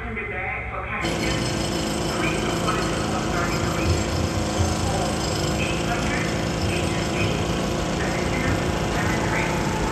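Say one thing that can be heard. A train rumbles along the tracks as it approaches.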